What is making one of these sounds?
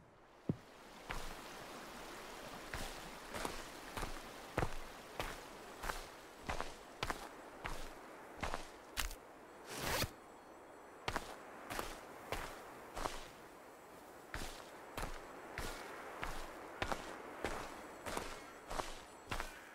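Footsteps crunch steadily through grass and leaves outdoors.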